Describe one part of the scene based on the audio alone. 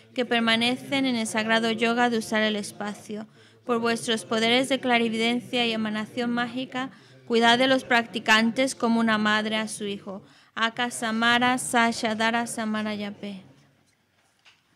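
An elderly man chants steadily through a microphone in long phrases with short pauses.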